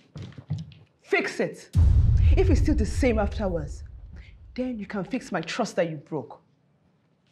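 A woman speaks with agitation, close by.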